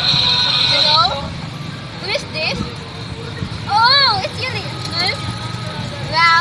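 A young woman talks on a phone with animation, close by.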